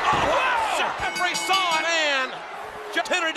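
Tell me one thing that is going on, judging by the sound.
A man shouts excitedly into a microphone.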